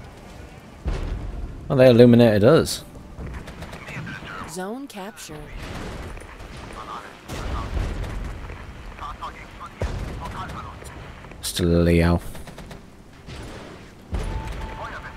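Artillery shells explode with deep booms in the distance.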